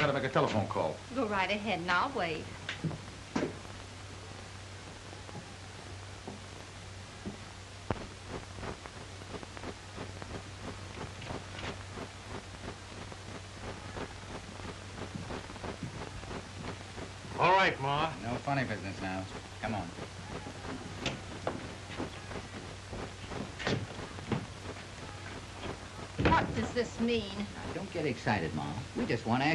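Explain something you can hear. A man speaks, close by.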